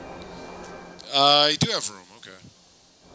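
A bright magical chime swells and fades.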